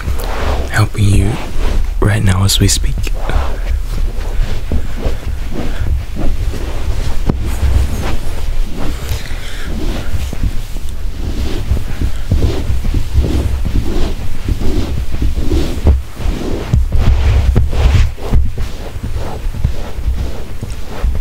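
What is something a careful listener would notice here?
Bedding rustles and shifts close by.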